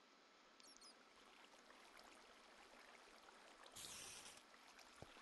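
Water trickles and flows softly.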